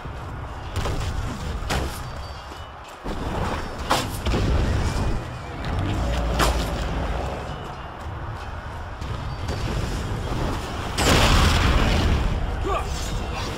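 Magic blasts roar in loud bursts.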